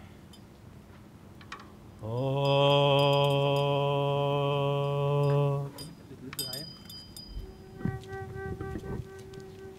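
A hand drum is struck with a beater.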